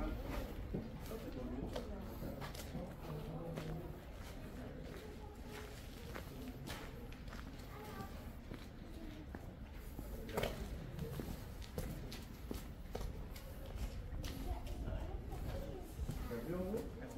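Footsteps tap on stone paving close by.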